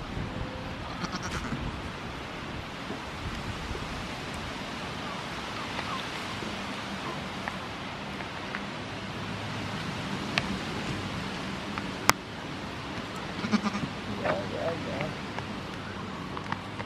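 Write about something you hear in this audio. Goats chew and sniff close by.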